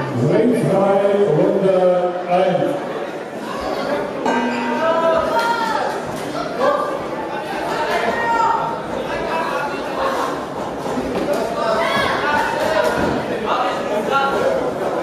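Spectators shout and call out in an echoing hall.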